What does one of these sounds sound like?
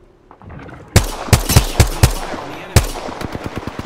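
Heavy rifle shots crack loudly, one after another.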